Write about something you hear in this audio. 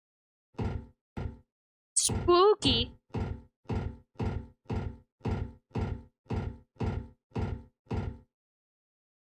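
Footsteps thud steadily down wooden stairs.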